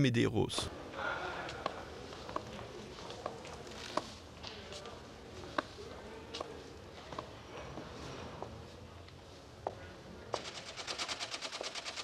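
A woman's heels click on hard stairs and floor.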